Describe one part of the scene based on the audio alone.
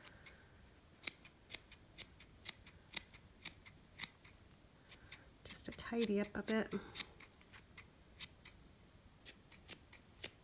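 Scissors snip repeatedly at yarn.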